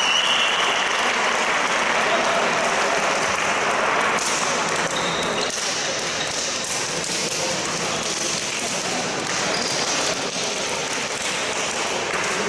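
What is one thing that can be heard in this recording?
Young players talk and call out, echoing in a large indoor hall.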